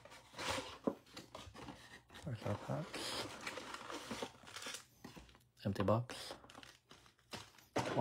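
Paper and cardboard rustle and crinkle close by.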